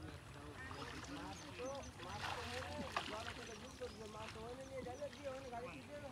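Water splashes softly as a person wades through a pond.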